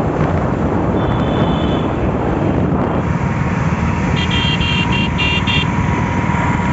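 A motorbike horn honks a few times.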